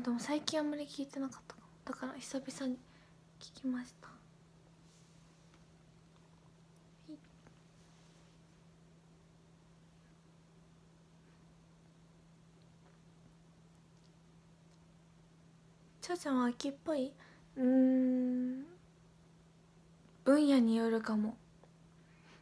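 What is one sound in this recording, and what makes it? A young woman speaks softly and close to a microphone, in short bursts with long pauses.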